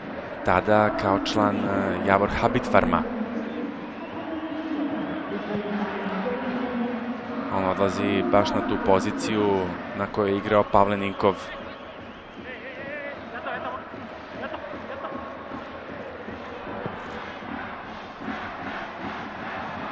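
A large stadium crowd murmurs and roars steadily outdoors.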